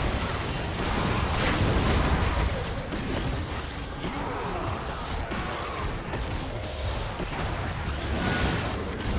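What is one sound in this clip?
Game spell effects crackle and whoosh during a fight.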